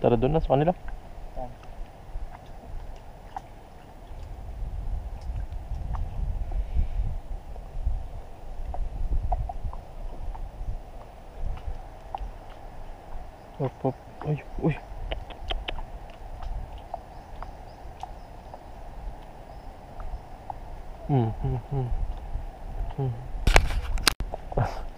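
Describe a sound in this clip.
Water laps softly against the hull of a small boat.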